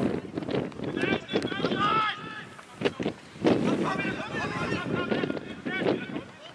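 Men shout to each other across an open field, far off.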